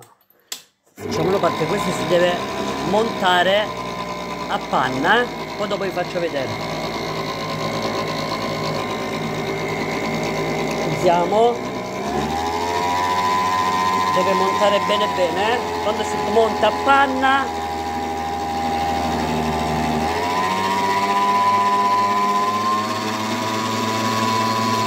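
An electric stand mixer whirs steadily, its motor pitch stepping up a couple of times.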